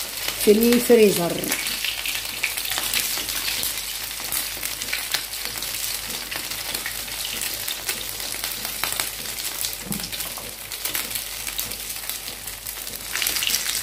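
Food taps against a metal pan as it is turned.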